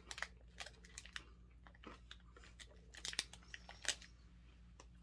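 A woman chews food with crisp, wet crunches close to the microphone.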